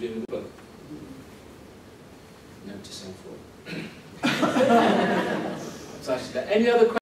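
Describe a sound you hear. A man speaks calmly to a small group.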